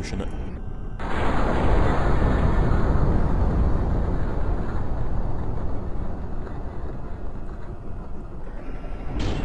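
A truck crashes into a trailer with loud crunching and scraping.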